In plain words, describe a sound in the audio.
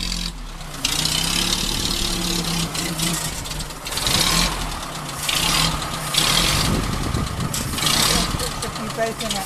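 An old car engine idles with a low, steady chug.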